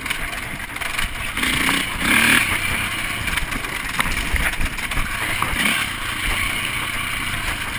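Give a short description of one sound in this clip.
A dirt bike engine roars close by as it rides along a trail.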